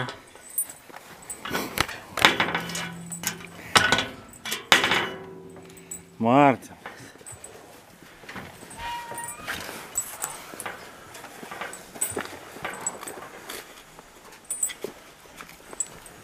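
A bear rattles and scrapes a wire mesh fence.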